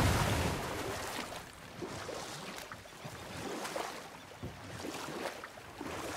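Oars splash and swish steadily through water.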